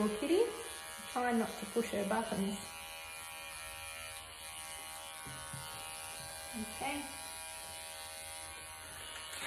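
Electric clippers buzz steadily.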